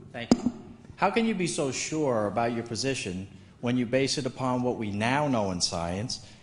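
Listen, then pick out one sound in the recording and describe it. A man in the audience speaks loudly and with animation into a microphone.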